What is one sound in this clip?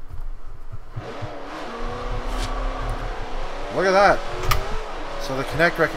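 A car engine revs and speeds up.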